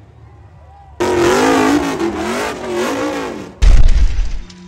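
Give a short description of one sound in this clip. An off-road buggy's engine revs loudly, rising and falling in pitch.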